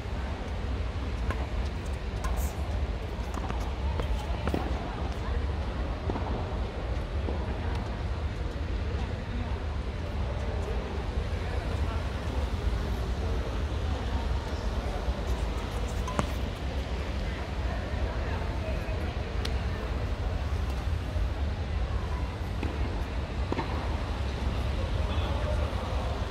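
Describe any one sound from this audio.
Badminton rackets hit a shuttlecock back and forth.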